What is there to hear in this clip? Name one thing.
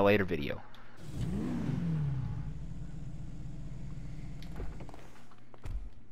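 A car engine revs up and idles with a low rumble.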